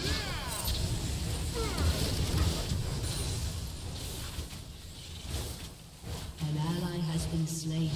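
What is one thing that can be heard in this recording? Spell effects whoosh and crash in a busy video game battle.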